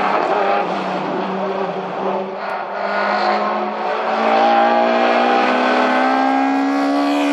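A second car's engine revs hard as the car approaches round a bend.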